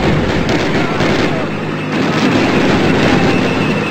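A rifle fires in rapid shots at close range.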